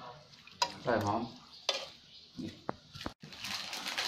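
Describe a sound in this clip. A metal spoon clinks and scrapes against a metal pot.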